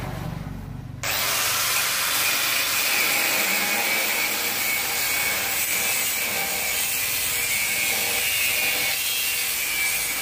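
An angle grinder screeches as it cuts through metal.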